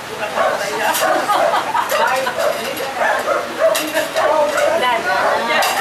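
Plates and cutlery clink now and then.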